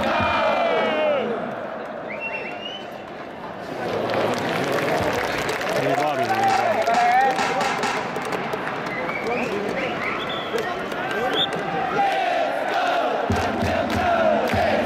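A large stadium crowd cheers, chants and sings steadily throughout.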